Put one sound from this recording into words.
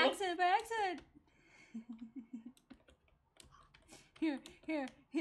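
A young woman talks animatedly into a microphone, close up.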